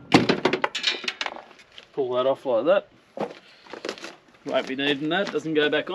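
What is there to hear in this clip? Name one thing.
A plastic panel knocks and rattles as it is pulled off.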